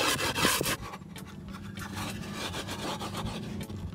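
A tool scrapes across skateboard grip tape.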